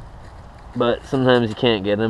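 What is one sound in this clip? Leaves rustle as hands handle them.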